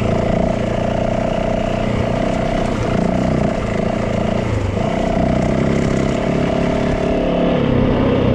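A motorcycle engine hums steadily, rising and falling with the throttle.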